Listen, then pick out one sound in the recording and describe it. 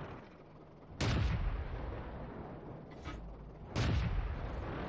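A tank cannon fires with a heavy boom.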